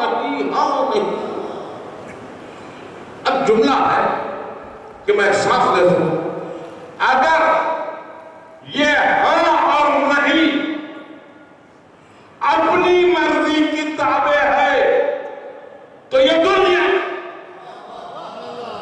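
An elderly man speaks forcefully into a microphone, in bursts that echo through a large hall.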